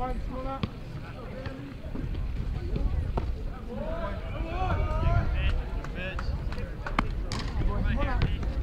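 Young men shout and cheer from the bench outdoors.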